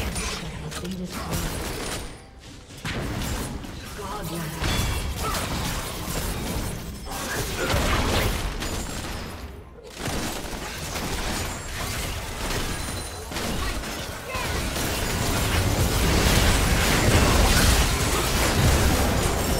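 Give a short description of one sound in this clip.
Game spell effects whoosh, crackle and explode in a fast battle.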